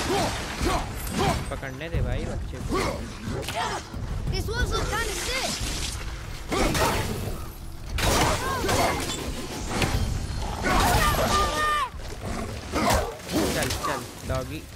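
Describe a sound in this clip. Axe blows strike and thud in a fight.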